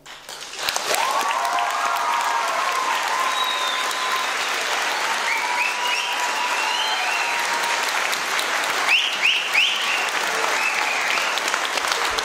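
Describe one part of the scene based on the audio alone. People in an audience cheer and whistle.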